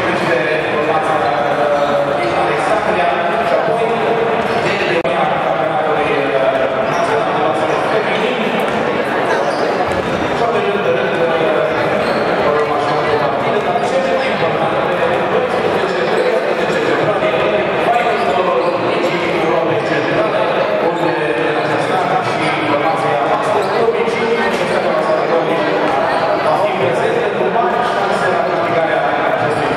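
A crowd chatters and murmurs in a large echoing hall.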